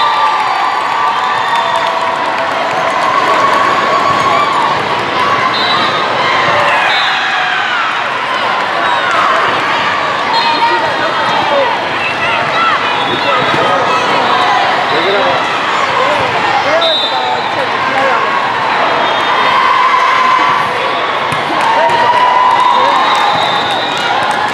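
Many voices of young players and onlookers chatter and cheer, echoing through a large hall.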